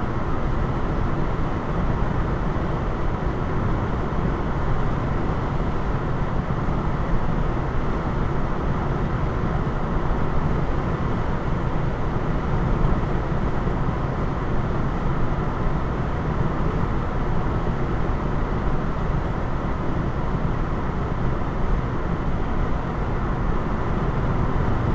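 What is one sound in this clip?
A steady low rumble of tyres on the road fills a moving car's cabin.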